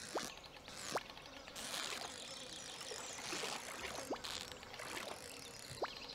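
A game's fishing reel clicks and whirs.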